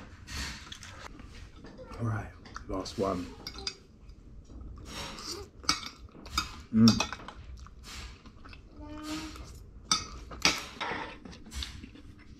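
Cutlery clinks and scrapes on a plate.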